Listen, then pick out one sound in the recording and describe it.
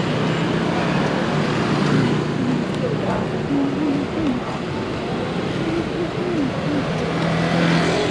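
A scooter engine buzzes past nearby.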